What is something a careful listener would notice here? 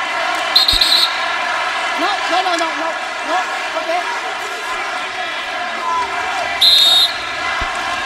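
A referee blows short sharp whistle blasts.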